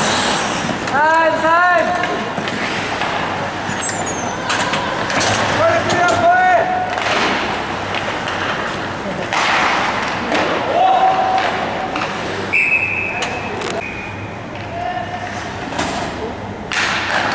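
A man shouts nearby from the stands.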